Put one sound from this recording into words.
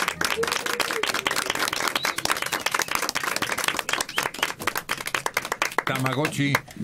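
A small group of people clap their hands close by.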